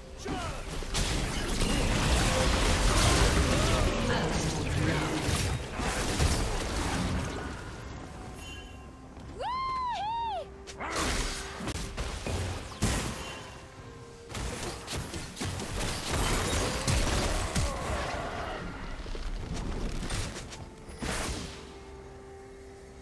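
Magical spell effects whoosh, crackle and crash in a fast fight.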